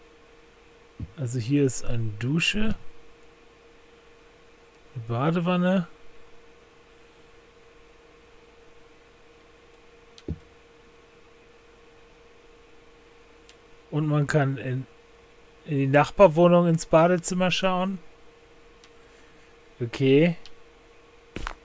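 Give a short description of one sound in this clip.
A middle-aged man speaks into a close microphone in short, calm remarks.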